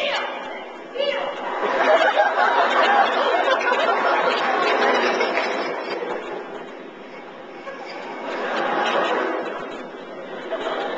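An audience laughs and cheers in a large hall.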